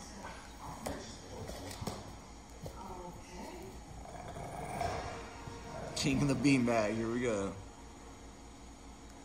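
Dogs growl and grumble as they wrestle playfully.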